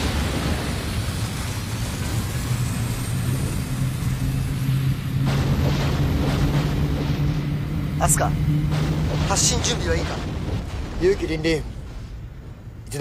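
A deep engine rumbles steadily and loudly.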